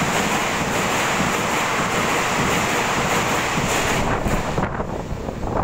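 A train rushes past close by with a loud, steady roar.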